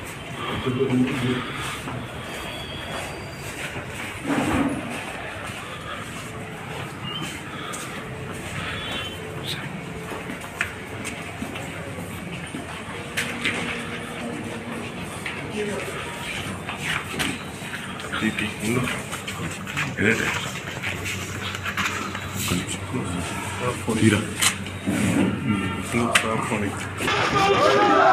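Men talk nearby in a busy crowd.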